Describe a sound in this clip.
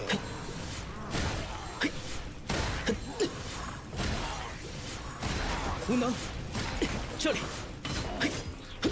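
Game attacks crackle and burst with magical impacts.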